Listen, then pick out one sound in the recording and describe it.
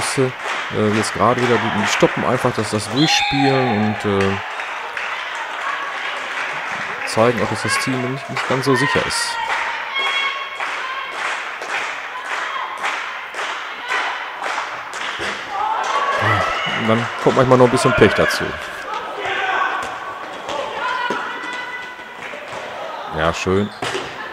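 A handball thumps on the floor and smacks into hands.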